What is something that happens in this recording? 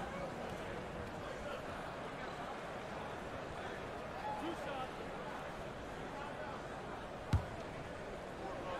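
A large arena crowd murmurs steadily.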